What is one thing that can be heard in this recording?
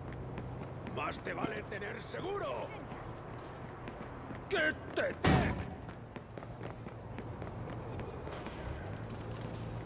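Footsteps run quickly over pavement and up stone steps.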